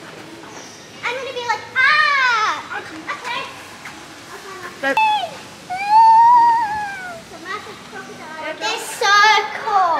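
A young girl talks and squeals excitedly nearby.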